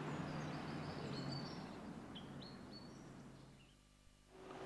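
A mandolin is plucked outdoors.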